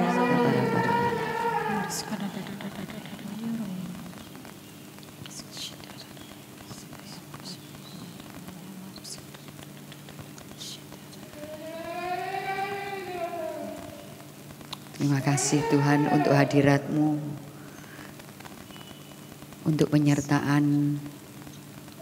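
A young woman sings into a microphone, heard through loudspeakers.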